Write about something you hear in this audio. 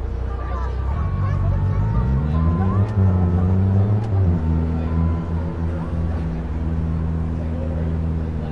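A car engine revs up, then hums steadily while driving.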